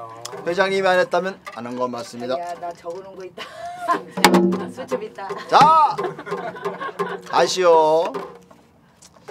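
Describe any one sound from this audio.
A middle-aged man sings loudly and expressively close by.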